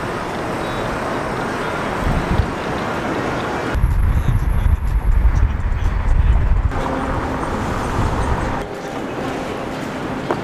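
A car's engine hums steadily.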